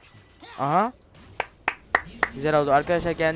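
Magic spells crack and burst in quick bursts.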